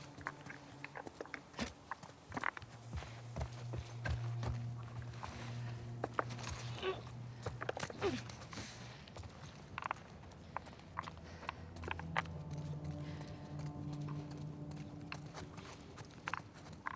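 Footsteps thud and crunch on a gritty floor.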